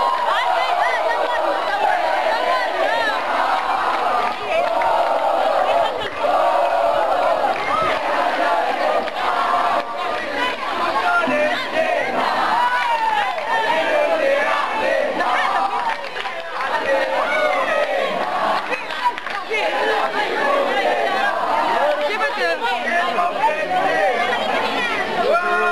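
A large crowd of young people shouts and chants loudly outdoors.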